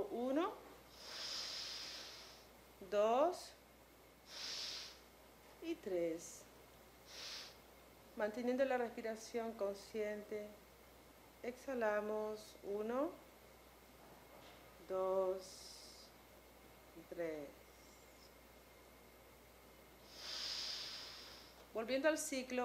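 A woman breathes deeply in and out.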